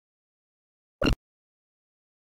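A short electronic beep sounds once.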